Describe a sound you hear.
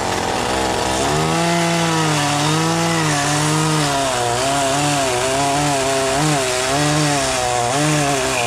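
A chainsaw cuts through wood, its engine rising and falling in pitch.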